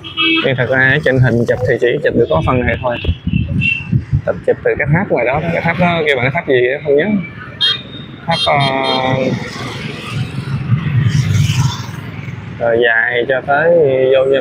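Motorbike engines hum as they pass nearby.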